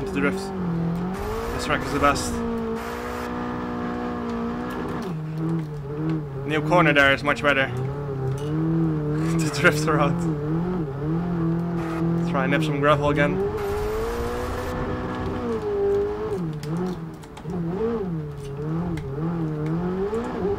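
A racing car engine roars, rising and falling in pitch as it speeds up and slows down.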